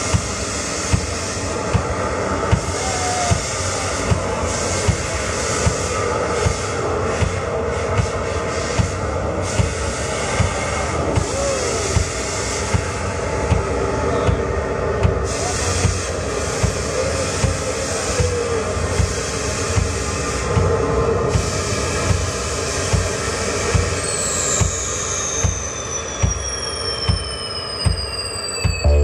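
Drums thump in a steady beat.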